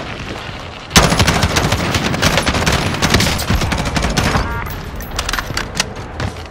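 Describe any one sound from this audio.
A rifle fires in rapid bursts of sharp shots.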